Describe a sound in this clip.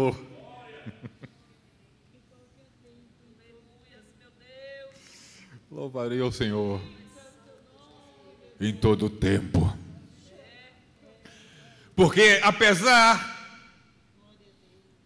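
A man reads aloud and preaches through a microphone, sometimes raising his voice.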